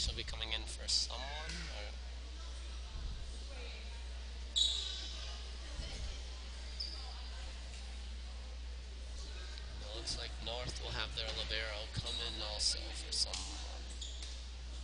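Young girls call out to each other in a large echoing gym.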